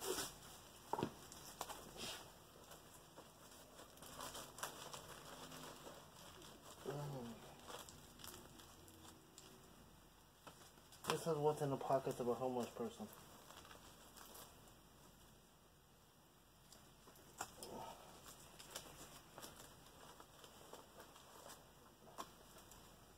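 Gloved hands rustle and handle a plastic bag.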